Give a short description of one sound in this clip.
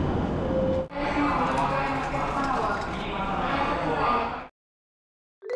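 A ticket gate flaps snap open.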